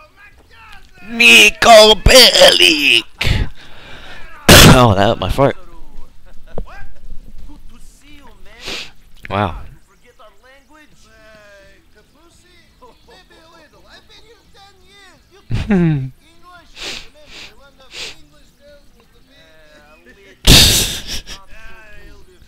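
A man shouts excitedly in greeting.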